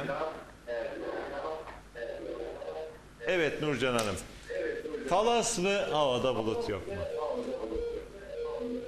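A middle-aged man speaks with animation into a microphone, close by.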